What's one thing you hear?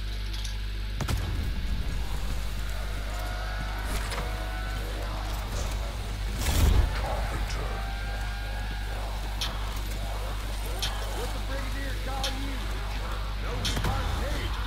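A weapon fires crackling energy blasts.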